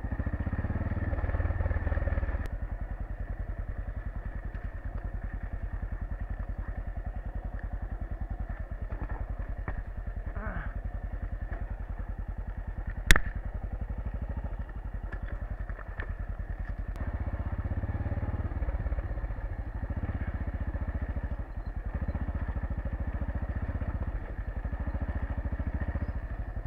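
A motorcycle engine putters steadily at low speed, close by.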